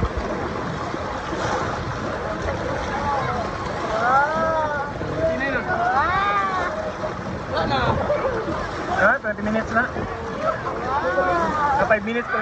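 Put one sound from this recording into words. Many people chatter and shout outdoors.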